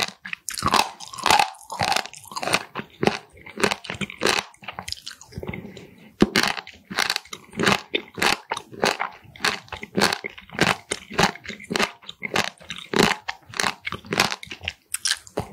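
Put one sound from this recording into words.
A woman chews crunchy food close to a microphone, with crisp, wet crunches.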